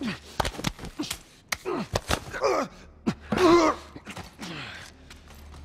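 An elderly man chokes and gasps.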